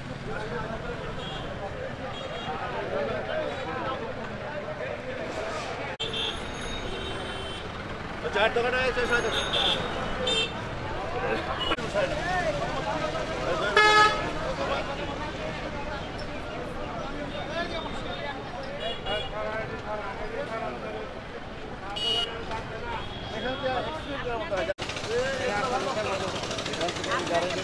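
A crowd of men talk all at once outdoors.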